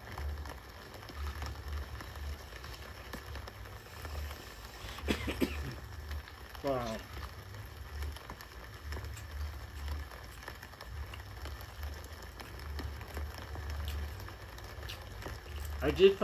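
A man chews food noisily close by.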